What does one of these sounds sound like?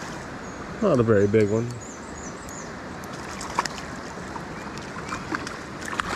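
A fishing reel clicks as the line is wound in.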